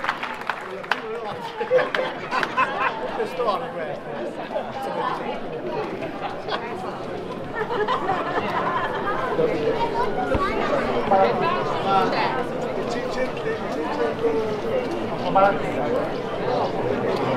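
Dancers' shoes scuff and tap on the cobbles.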